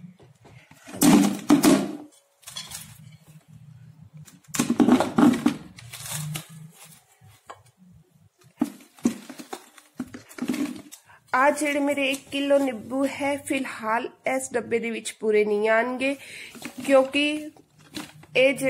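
Fruit pieces are pushed into a plastic jar with soft thuds and rustles.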